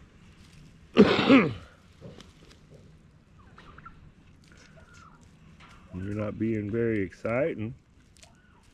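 Turkeys gobble loudly close by.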